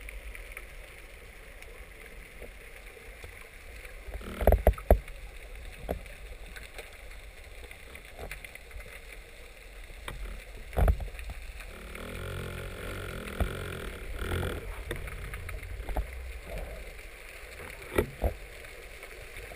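Water murmurs and hums, heard muffled from underwater.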